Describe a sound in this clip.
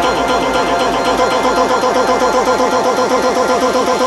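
A deep bass line in electronic dance music drops out.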